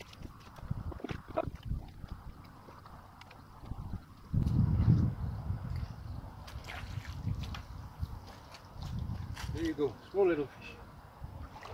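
A person wades barefoot through shallow water, splashing.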